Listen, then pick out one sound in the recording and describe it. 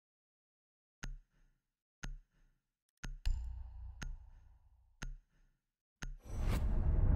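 Short sharp ticks count down.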